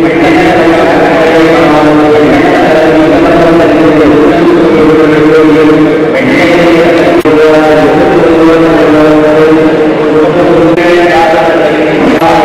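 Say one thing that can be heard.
A man chants steadily through a microphone.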